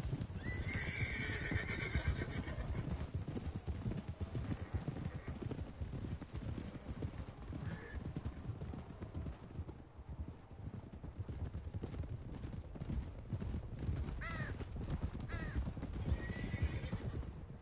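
Horses gallop through snow.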